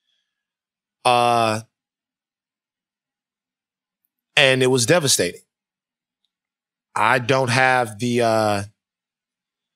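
A man speaks into a close microphone in short bursts with pauses.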